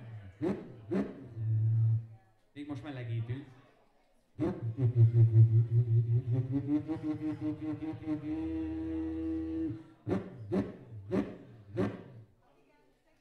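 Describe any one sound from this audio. A man beatboxes into a microphone, heard through loudspeakers.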